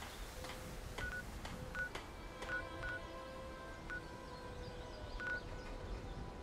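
Short electronic beeps sound from a menu.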